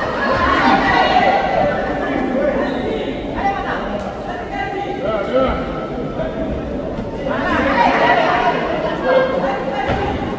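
A crowd in a large hall shouts and cheers.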